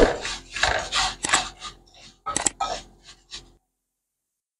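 A wooden spoon scrapes and stirs dry rice in a metal pan.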